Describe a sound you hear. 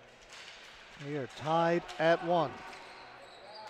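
Young men shout loudly across an echoing indoor rink.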